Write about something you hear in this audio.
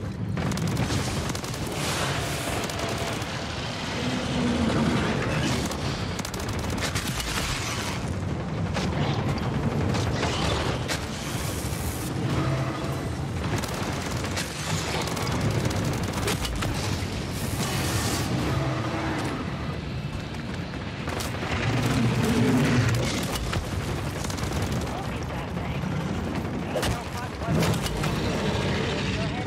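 Rapid gunfire rattles from a video game.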